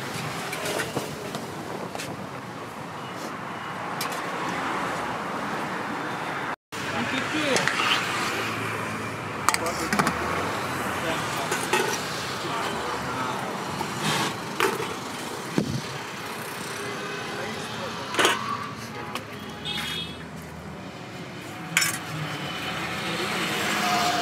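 A metal spoon scrapes and clinks against steel pots.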